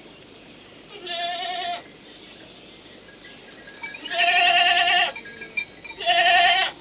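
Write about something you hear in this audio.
Goats bleat loudly nearby.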